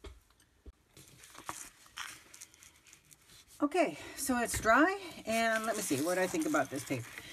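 A sheet of thick paper rustles and scrapes as it is moved around.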